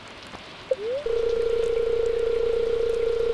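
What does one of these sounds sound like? A steady electronic tone hums.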